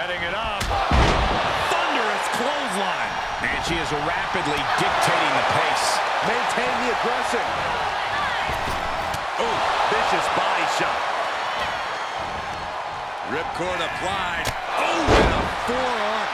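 Bodies slam heavily onto a wrestling mat with loud thuds.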